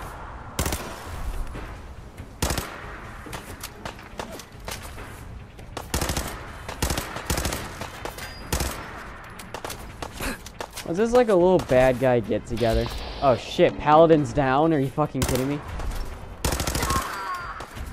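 Gunshots ring out, one at a time, with sharp loud cracks.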